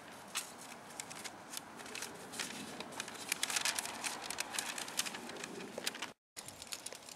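Paper crinkles and rustles close by in a person's hands.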